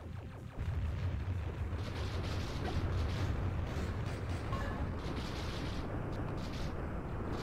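Video game shots fire in quick bursts.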